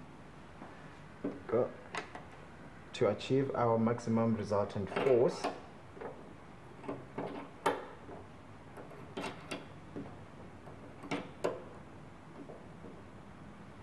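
Small metal and wooden pieces click and tap as they are handled.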